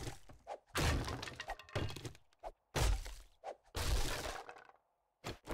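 An axe chops into wood with heavy thuds.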